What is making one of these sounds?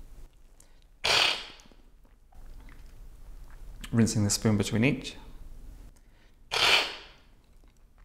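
A man slurps loudly from a spoon.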